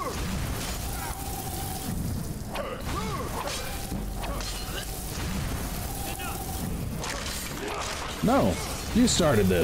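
A magic spell crackles and hums.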